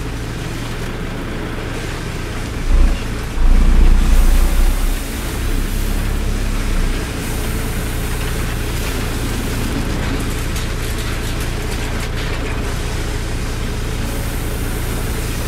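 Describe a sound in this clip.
A truck's diesel engine idles with a deep, steady rumble that briefly swells louder.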